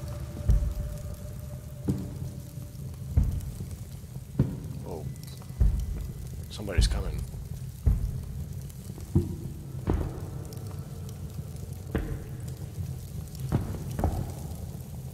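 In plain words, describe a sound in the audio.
Footsteps thud slowly on stone.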